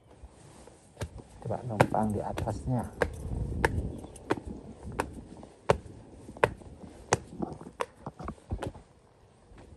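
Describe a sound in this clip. Footsteps scuff and tap on concrete steps.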